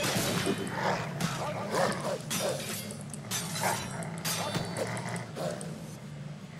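Blades clash and strike repeatedly in a fight.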